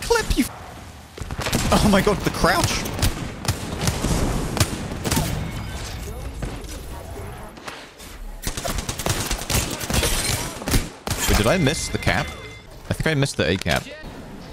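Guns fire rapid bursts of shots.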